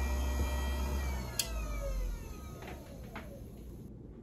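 A small electric motor whirs and winds down to a stop.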